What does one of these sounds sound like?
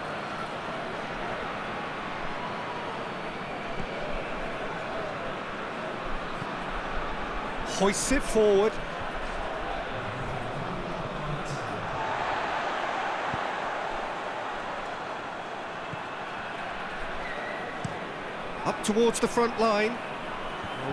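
A large crowd murmurs and cheers steadily in a big open stadium.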